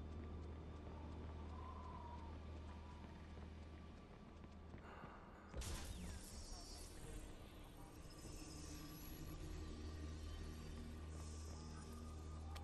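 Footsteps tread on pavement.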